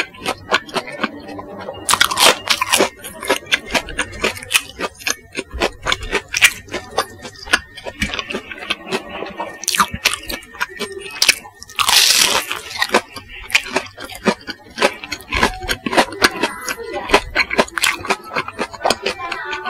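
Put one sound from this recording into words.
A man chews wetly with his mouth close to a microphone.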